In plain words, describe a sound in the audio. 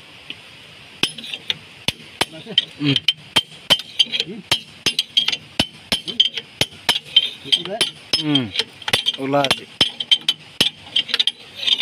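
Metal parts clink and tap.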